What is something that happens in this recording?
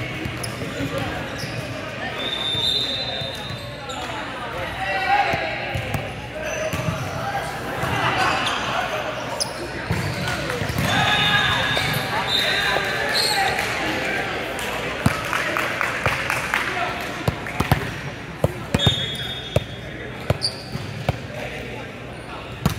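Young men call out and talk across a large echoing gym.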